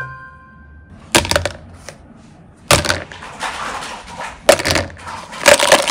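Plastic toys knock as they drop into a plastic basket.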